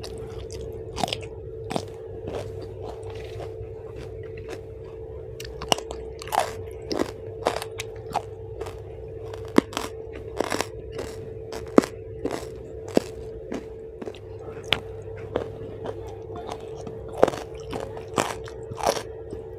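A woman chews crunchy food loudly and wetly, close to a microphone.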